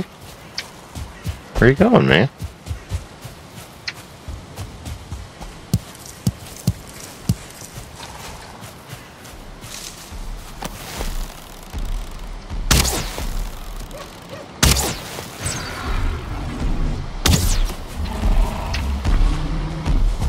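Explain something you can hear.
Footsteps swish and thud through tall grass.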